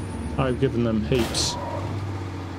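A truck scrapes against a trailer.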